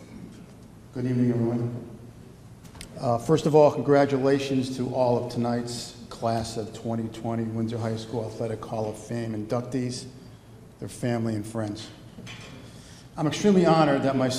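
A middle-aged man speaks calmly into a microphone through a loudspeaker in a large echoing room.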